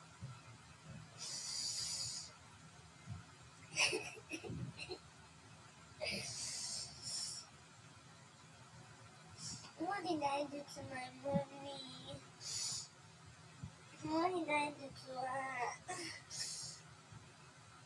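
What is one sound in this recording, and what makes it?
A young woman sobs and sniffles close by.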